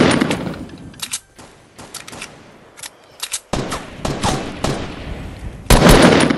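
Single gunshots crack out in a quick series.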